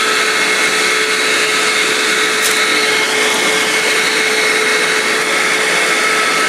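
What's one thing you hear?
A small electronic device hums steadily over a constant hiss.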